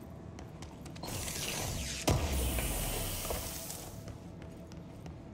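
Steam hisses loudly from a leaking machine.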